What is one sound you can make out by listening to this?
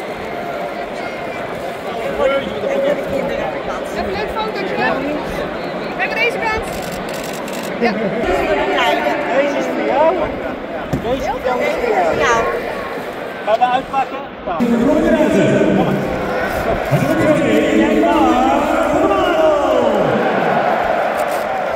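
A crowd murmurs in a stadium.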